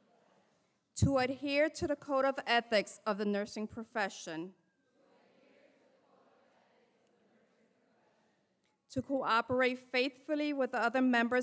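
A woman speaks through a loudspeaker, echoing in a large hall.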